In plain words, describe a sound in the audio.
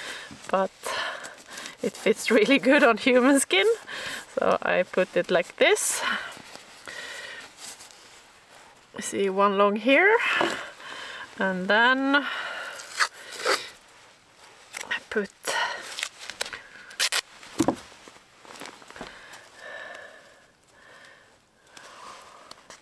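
Cloth rustles softly as it is handled.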